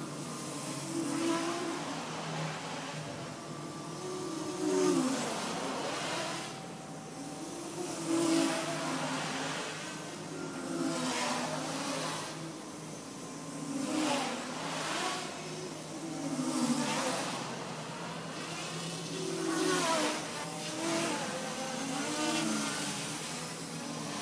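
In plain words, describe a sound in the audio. A small drone buzzes nearby, its whine rising and falling as it flies.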